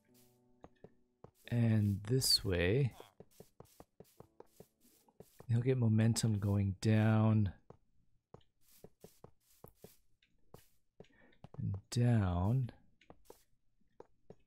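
Rails are set down with short, soft knocks.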